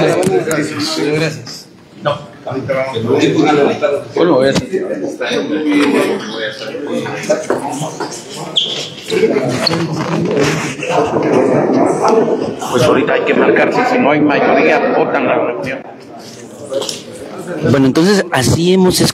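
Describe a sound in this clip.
Several men talk loudly and over one another close by.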